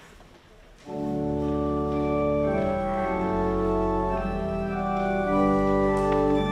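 A choir sings together.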